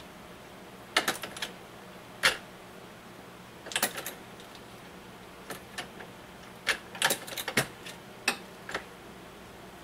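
Metal parts of a press clack and click as a man works its handle.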